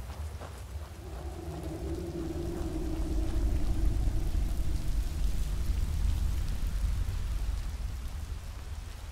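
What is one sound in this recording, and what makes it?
Water rushes and splashes nearby, growing louder.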